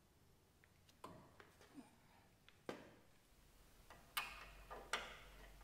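Metal parts clank against each other.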